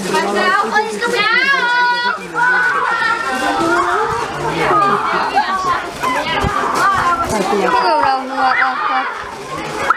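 Children shout, scream and laugh excitedly outdoors.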